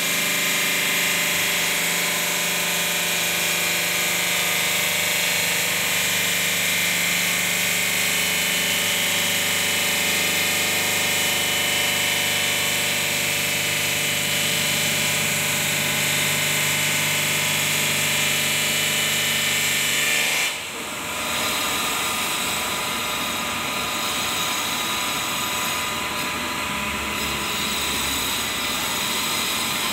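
A large stone-cutting saw grinds through stone with a loud, steady, high whine.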